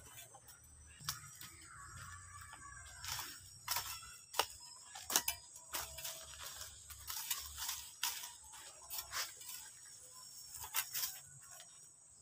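A hand hoe chops and scrapes into dry soil.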